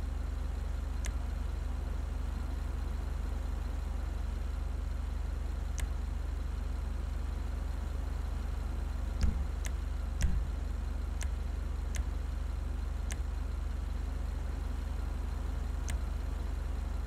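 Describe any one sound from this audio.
Menu selections click softly now and then.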